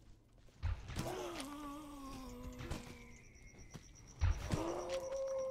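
A creature lets out a long, wavering cry.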